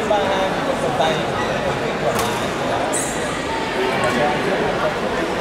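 A crowd of men and women chatter steadily in a large echoing hall.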